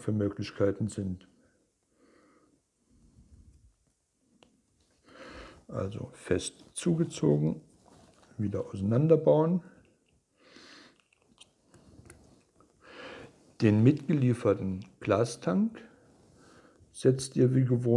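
A man talks calmly and close to a microphone, in short phrases with pauses.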